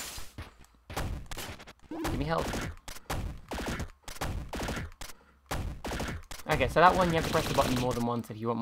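Short electronic blasts and bursts sound in quick succession.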